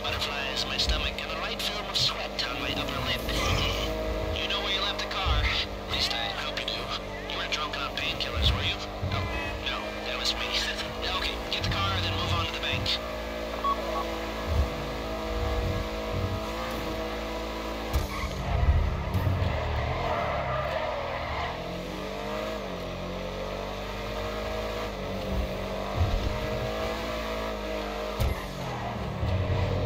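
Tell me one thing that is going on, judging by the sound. A car engine hums steadily as the car drives along, its pitch rising and dipping with speed.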